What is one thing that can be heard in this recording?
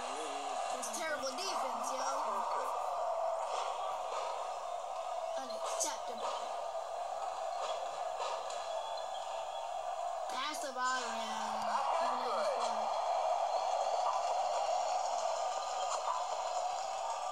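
A crowd cheers steadily through a small phone speaker.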